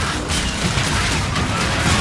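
A suppressed rifle fires rapid muffled shots.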